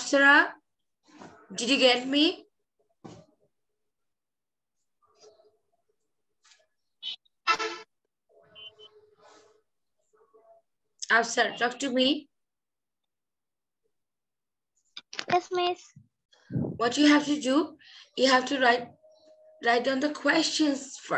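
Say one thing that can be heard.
A woman speaks clearly over an online call, pausing between short phrases.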